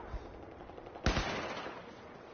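A rifle fires a few loud shots.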